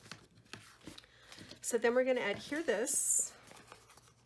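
A card slides and taps on a table.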